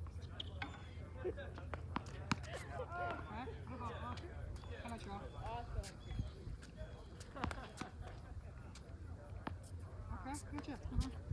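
A tennis ball pops off a racket several times.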